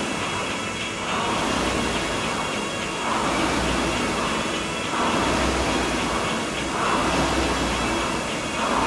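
A rowing machine's flywheel whooshes in a steady rhythm with each stroke.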